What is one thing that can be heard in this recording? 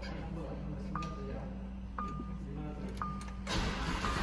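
A car chimes with short electronic beeps.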